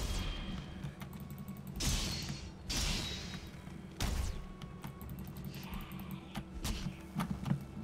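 Sharp weapon blows thud and crack during a fight.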